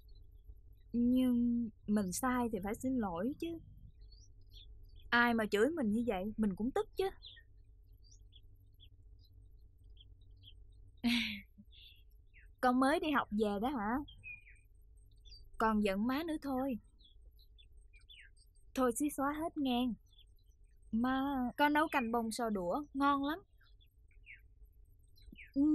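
A young woman speaks calmly and earnestly, close to a microphone, in short phrases with pauses.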